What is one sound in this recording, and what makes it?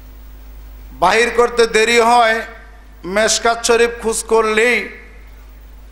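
A middle-aged man preaches loudly and with passion into a microphone, heard through loudspeakers.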